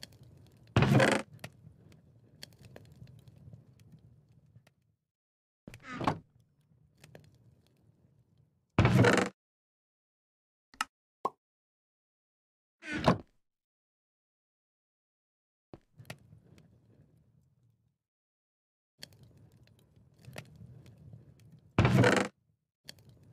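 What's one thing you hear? A wooden chest creaks open and thuds shut.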